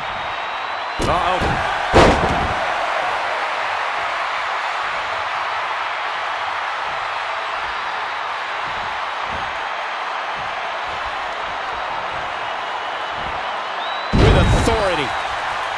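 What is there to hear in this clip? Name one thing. A body slams heavily onto a wrestling mat with a loud thud.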